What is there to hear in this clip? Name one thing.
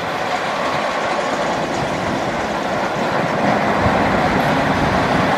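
Steel wheels roll over rails.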